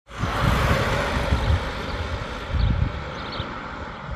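A car drives off down the road and fades away.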